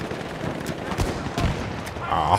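Rifle shots crack sharply in a battle.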